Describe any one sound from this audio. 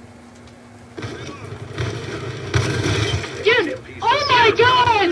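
Video game gunfire and explosions sound through a television speaker.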